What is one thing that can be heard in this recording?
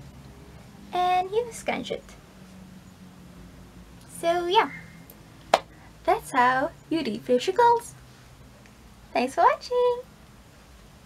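A young woman talks close up, with animation.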